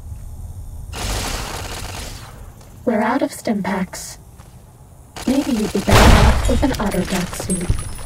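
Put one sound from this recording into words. A rifle fires in loud bursts.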